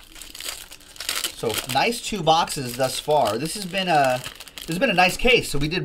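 Foil wrappers crinkle and tear as a pack is ripped open.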